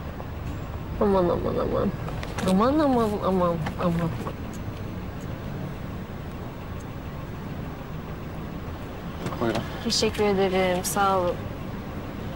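A young woman speaks nearby in an upset, pleading voice.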